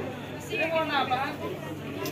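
Several people chat nearby.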